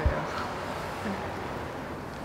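A man speaks quietly and sadly.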